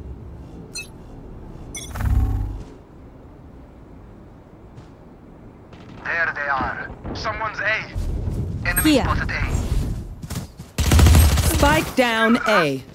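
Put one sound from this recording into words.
Rapid gunshots fire in short bursts.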